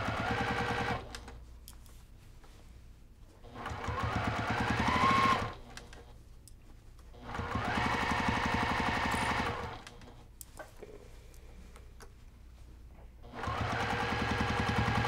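A sewing machine whirs and stitches in short bursts, speeding up and stopping.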